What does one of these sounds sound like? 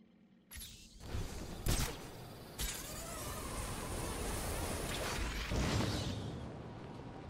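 Wind rushes loudly past, then dies down.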